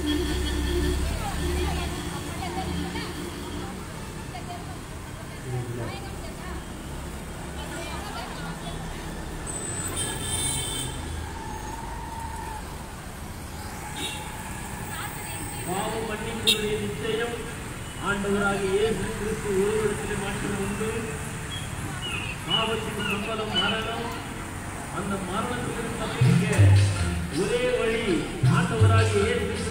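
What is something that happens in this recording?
Traffic rumbles past on a busy street.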